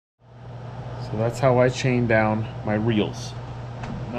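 A man speaks calmly in a quiet room.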